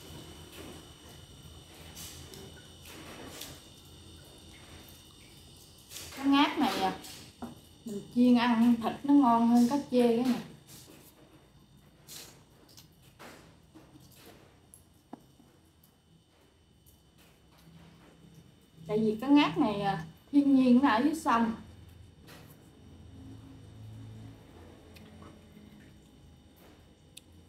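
A young woman chews food noisily.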